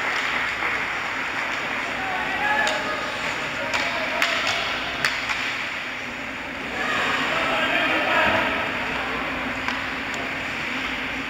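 A crowd of spectators chatters in a large echoing arena.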